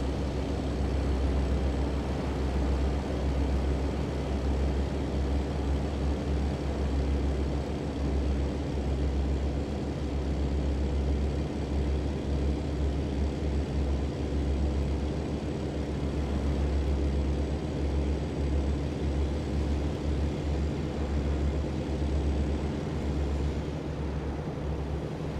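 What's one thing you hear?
A truck engine drones steadily with a deep rumble.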